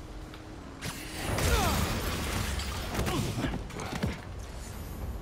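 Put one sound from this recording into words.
A fiery blast bursts with crackling sparks.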